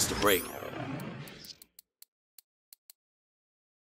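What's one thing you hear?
Short electronic menu clicks tick in quick succession.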